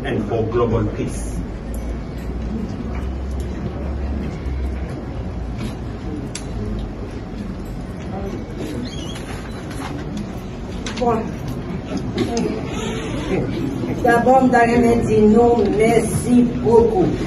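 A crowd of people murmurs and chatters in the room.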